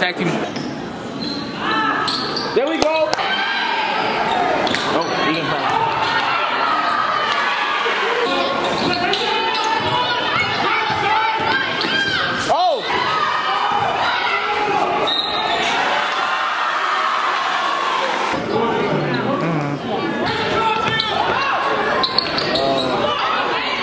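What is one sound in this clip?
A crowd cheers and chatters in a large echoing gym.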